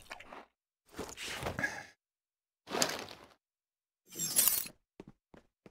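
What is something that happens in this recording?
A soldier eats from a can with wet chewing and slurping sounds.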